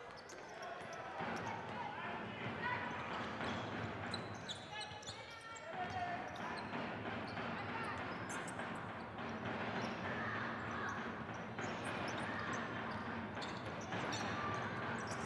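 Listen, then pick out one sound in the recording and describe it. A basketball bounces on the court as a player dribbles.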